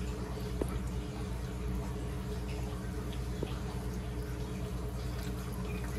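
Hands squish and mix soft food in a glass bowl.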